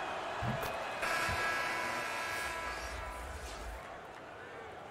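A crowd cheers loudly after a basket.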